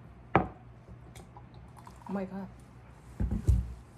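A thick drink pours into a glass.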